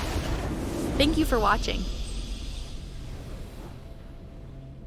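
A bright, triumphant victory fanfare rings out and then fades away.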